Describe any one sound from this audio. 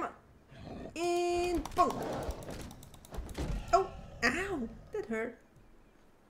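A creature growls and snarls.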